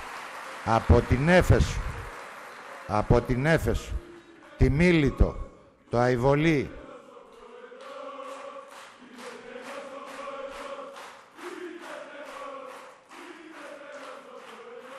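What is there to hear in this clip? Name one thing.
An elderly man speaks into a microphone, heard through loudspeakers in a large hall.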